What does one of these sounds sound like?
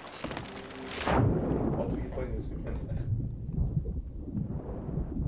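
Water gurgles and rumbles, muffled, underwater.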